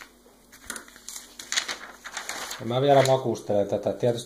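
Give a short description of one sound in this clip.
Paper pages rustle and crinkle as they are turned.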